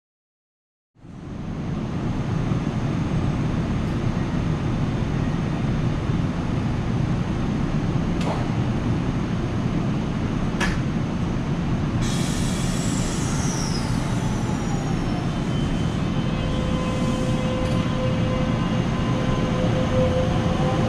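A stationary train engine hums and rumbles steadily.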